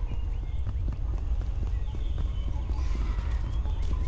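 Footsteps slap quickly on stone.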